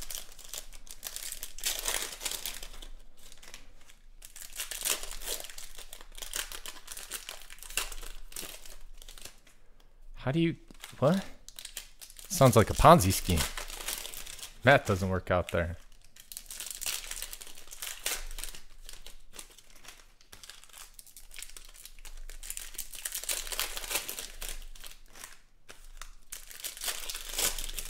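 Foil card packs crinkle and tear open.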